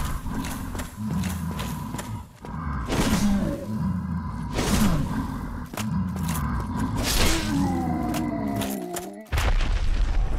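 A large beast growls and roars loudly.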